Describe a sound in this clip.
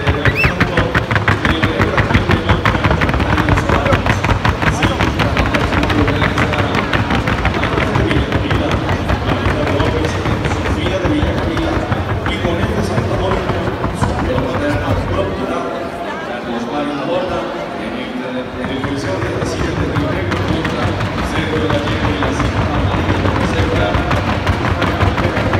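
Horse hooves tap quickly on soft dirt.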